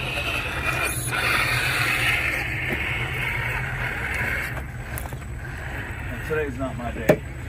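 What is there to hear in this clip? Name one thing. A small electric motor whines steadily, then eases off.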